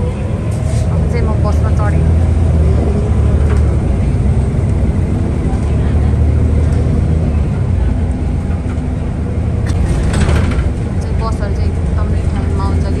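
A bus engine rumbles steadily from inside the bus as it drives along.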